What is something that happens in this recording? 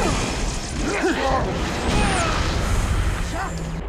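Guns fire in rapid bursts amid game sound effects.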